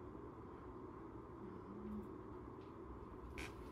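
A wooden chair creaks softly as a person shifts in the seat.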